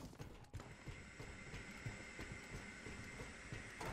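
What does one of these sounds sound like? Steam hisses from a vent.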